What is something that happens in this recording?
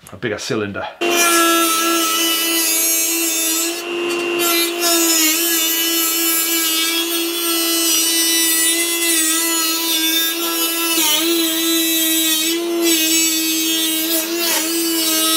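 A small rotary tool whines steadily as it grinds metal.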